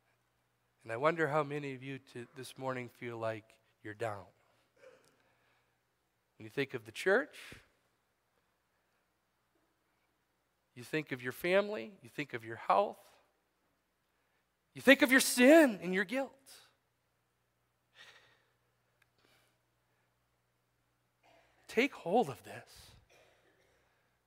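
A man speaks with animation through a microphone, pausing often, in an echoing hall.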